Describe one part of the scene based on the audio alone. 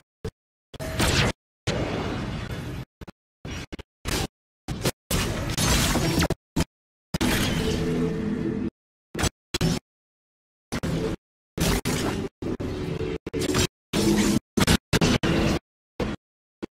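An electric weapon crackles and zaps in bursts.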